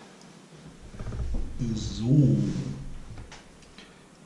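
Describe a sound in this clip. A chair creaks and thumps as a person sits down.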